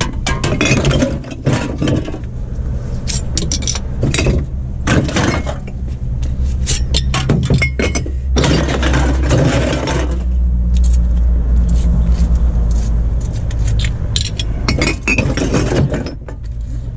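Cans and plastic bottles clatter and crunch as a hand rummages through a pile.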